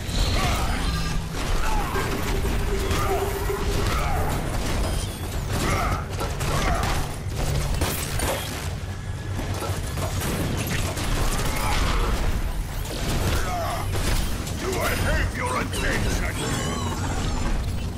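Rapid gunfire rattles again and again.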